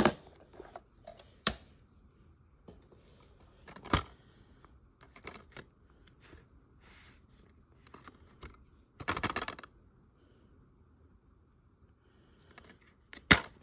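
A plastic case clicks and rustles in a hand.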